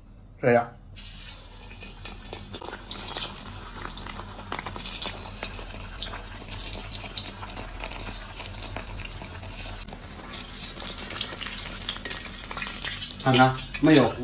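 Hot oil sizzles and crackles steadily as food fries.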